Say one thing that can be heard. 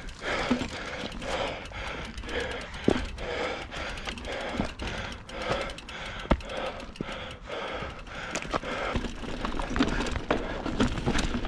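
Bike tyres roll and crunch over rocky dirt.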